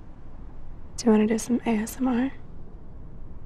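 Another young woman answers quietly up close.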